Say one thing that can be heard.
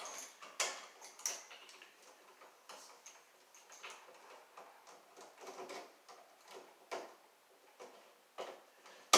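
A screwdriver clicks and scrapes against a metal wall outlet.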